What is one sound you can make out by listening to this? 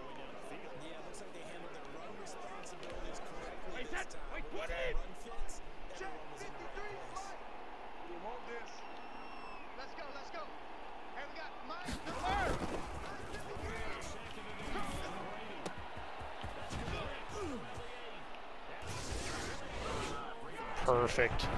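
A large stadium crowd murmurs and roars, swelling into loud cheers.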